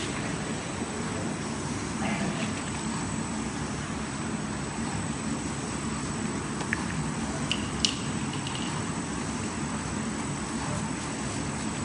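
A plastic bottle clicks and rattles in a hand.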